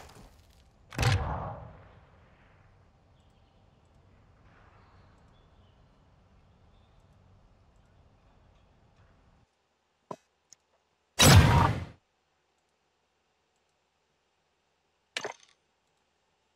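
A video game's sound effects whoosh in short bursts.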